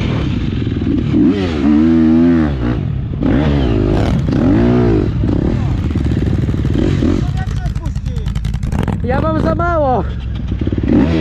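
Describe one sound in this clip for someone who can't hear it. Quad bike engines rev up and down in short bursts nearby.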